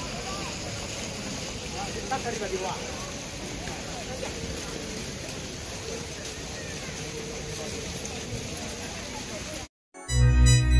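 Outdoor street noise with a murmur of distant voices fills an open square.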